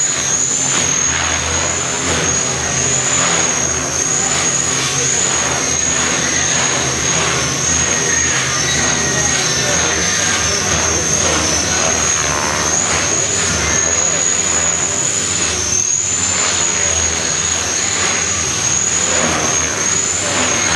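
A small electric model aircraft whines steadily with a high buzz as it flies around.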